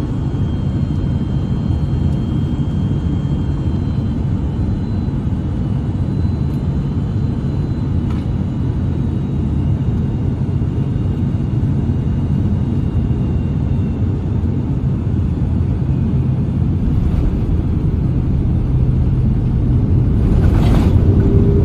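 A jet engine roars loudly, heard from inside an airliner cabin.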